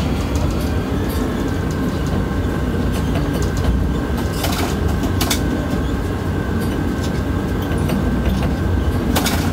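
A crane motor hums and rumbles steadily while hoisting.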